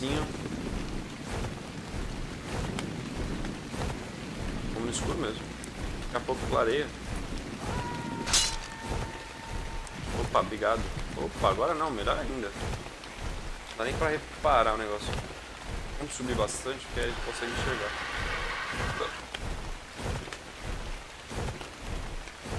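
Rain falls.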